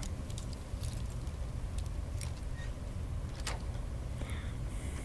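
A lock pick scrapes and clicks inside a metal lock.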